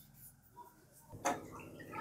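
Water pours into a pan of liquid.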